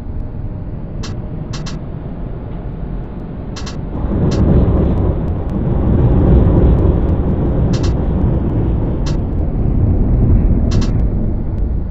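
Tram wheels click over rail joints.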